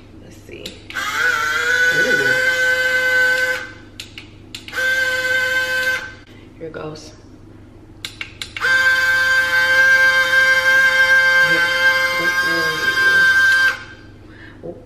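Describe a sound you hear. A small blender motor whirs in loud steady bursts.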